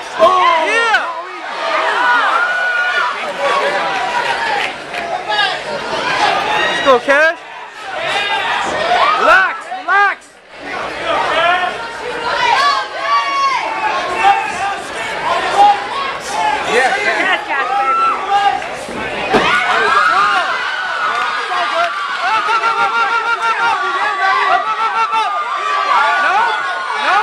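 A crowd shouts and cheers in a large echoing hall.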